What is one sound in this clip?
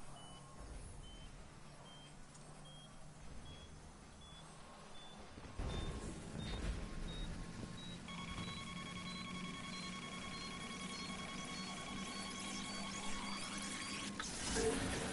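Short electronic beeps tick steadily, each a little higher in pitch.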